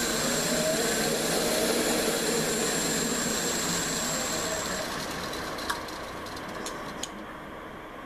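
A boring bit grinds and scrapes into spinning wood.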